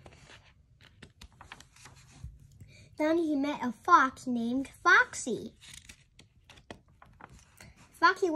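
Paper pages rustle as a book's page is turned.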